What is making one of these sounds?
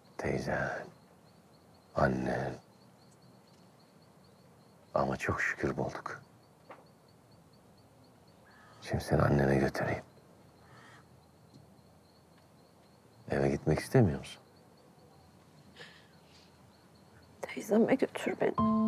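A young woman speaks softly and tensely close by.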